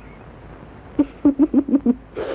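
A woman laughs softly in short bursts.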